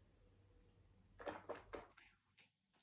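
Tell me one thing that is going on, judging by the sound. A man sips wine with a slurp.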